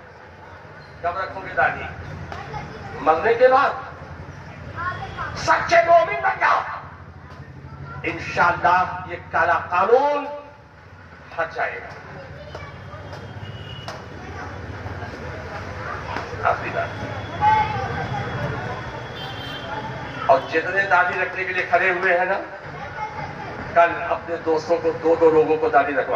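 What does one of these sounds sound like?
A man speaks with emotion through loudspeakers, echoing outdoors.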